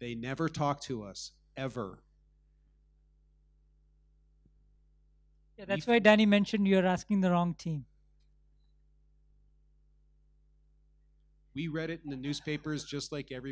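A man speaks calmly into a microphone, heard over loudspeakers.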